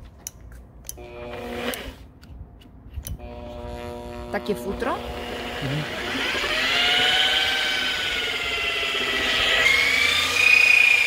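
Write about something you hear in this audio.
An electric polisher whirs steadily, its pitch rising and falling.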